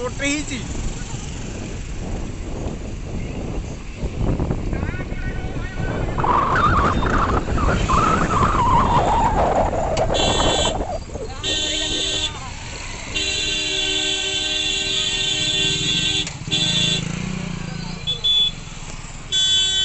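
A motorcycle engine rumbles close by.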